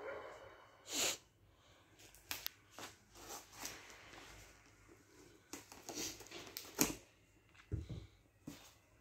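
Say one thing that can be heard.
Small clicks and taps sound from a wooden puzzle box being handled.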